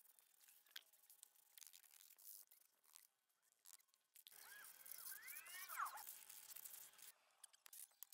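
A trowel scrapes on wet concrete.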